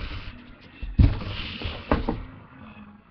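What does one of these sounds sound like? A cardboard box is set down on the floor with dull thuds.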